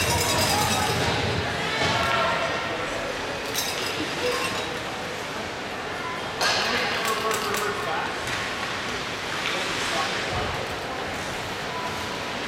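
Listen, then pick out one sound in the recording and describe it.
Young players shout in the distance.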